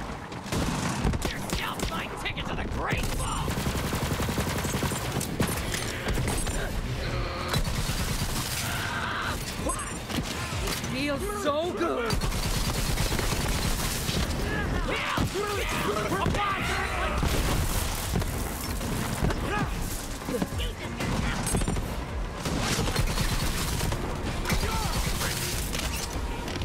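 Gunshots and energy blasts fire rapidly.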